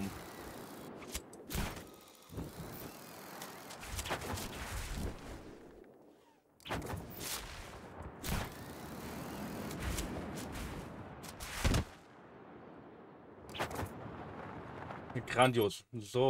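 Wind rushes loudly past a gliding wingsuit flyer.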